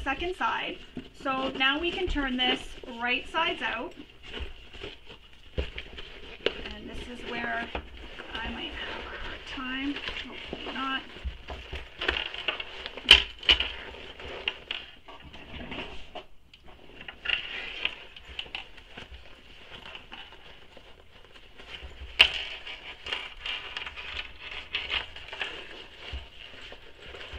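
Fabric rustles and crinkles as hands handle a bag.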